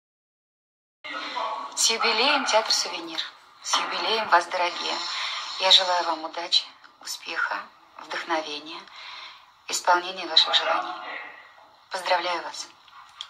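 A middle-aged woman speaks expressively, close to the microphone.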